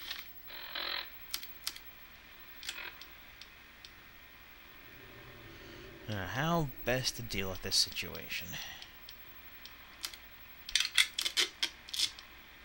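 Short electronic clicks tick in quick bursts.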